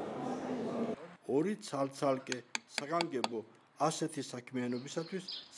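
A metal tool scratches against stone.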